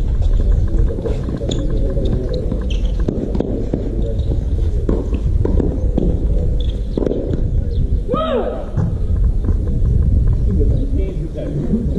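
Tennis balls are struck back and forth with sharp thwacks.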